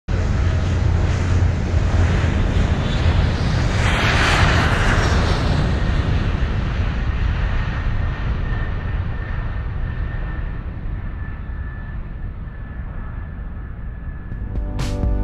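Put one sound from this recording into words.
Jet engines roar loudly as an airliner takes off and climbs, slowly easing off.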